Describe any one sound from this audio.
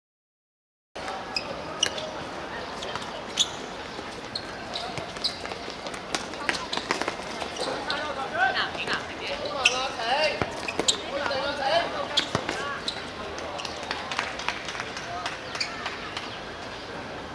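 Young players shout to each other outdoors.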